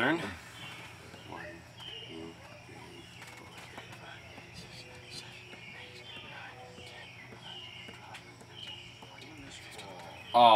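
A second young man talks calmly nearby.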